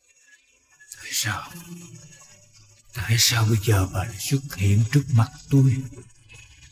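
A middle-aged man speaks nearby.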